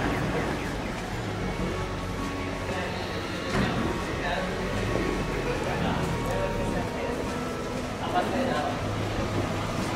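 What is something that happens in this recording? Footsteps walk on a stone street.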